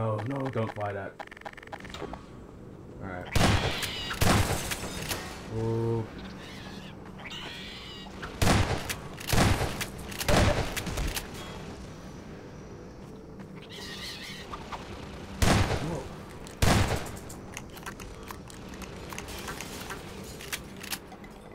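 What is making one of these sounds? Shells click into a shotgun as it is reloaded.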